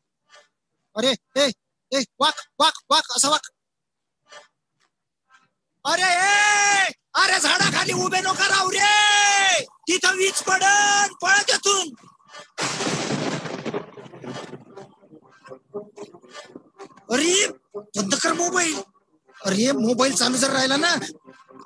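A man speaks with animation, heard through an online call.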